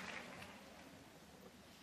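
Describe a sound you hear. Skate blades scrape softly on ice.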